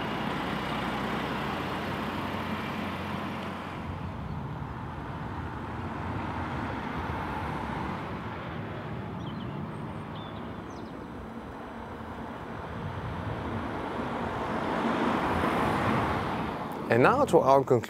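A car engine hums as a car drives past on a road.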